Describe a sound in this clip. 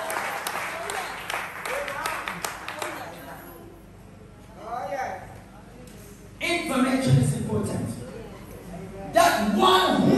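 A woman speaks with passion through a microphone and loudspeakers in an echoing room.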